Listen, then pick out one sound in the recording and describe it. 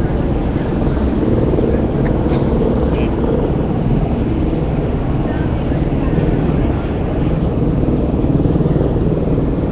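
A large crowd murmurs and shouts outdoors nearby.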